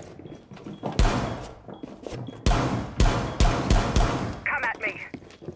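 A wooden wall bursts apart with loud cracking and crashing debris.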